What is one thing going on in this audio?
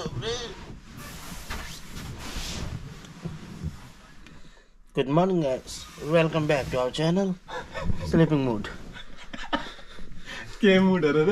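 Bedding rustles as a man shifts under it.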